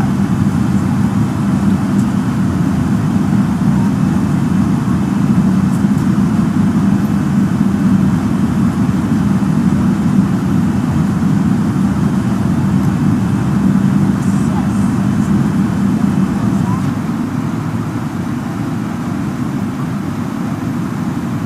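A jet airliner's engines roar in a steady, low drone.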